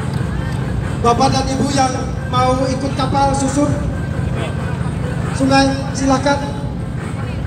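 Men talk loudly nearby outdoors.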